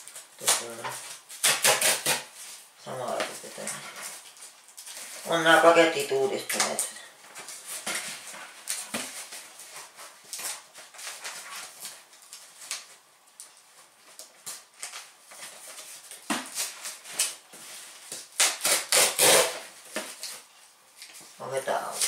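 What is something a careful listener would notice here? Cardboard rustles and scrapes as hands handle a box.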